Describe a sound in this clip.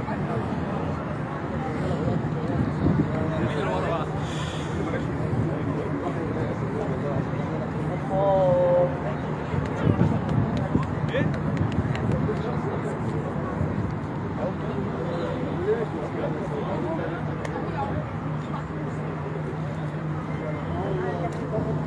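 Several men talk nearby with animation, outdoors.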